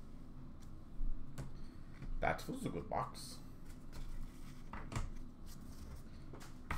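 Plastic card cases click and clatter as hands handle them.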